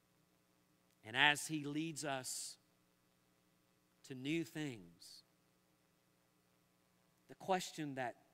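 A middle-aged man speaks slowly and calmly through a microphone, in short phrases with pauses, in a large hall.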